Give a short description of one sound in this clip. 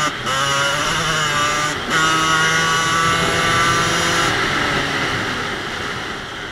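A dirt bike engine buzzes loudly up close, its revs dipping briefly between gear shifts.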